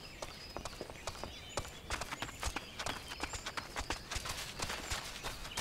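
Footsteps patter on grass and soil.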